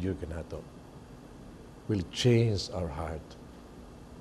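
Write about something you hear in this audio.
A middle-aged man speaks with feeling into a microphone.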